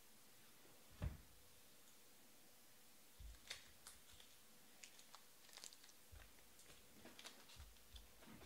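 Trading cards are set down on a table with soft taps.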